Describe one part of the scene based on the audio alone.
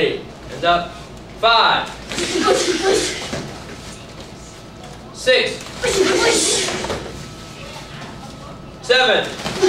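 A man shouts commands loudly in an echoing room.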